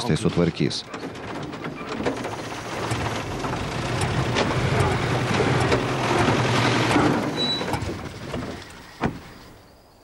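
A car engine rumbles as the car approaches.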